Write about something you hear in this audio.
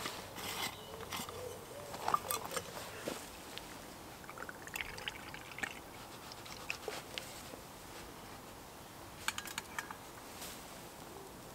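Metal parts clink and clatter as they are handled.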